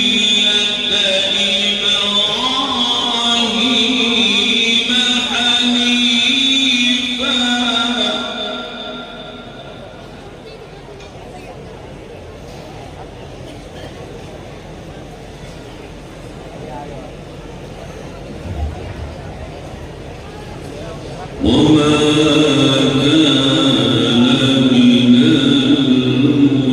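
An elderly man chants melodiously into a microphone through a loudspeaker system, with echo.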